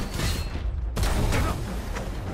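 A loud explosion bursts with a heavy boom.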